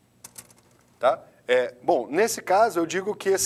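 A man speaks calmly, as if teaching.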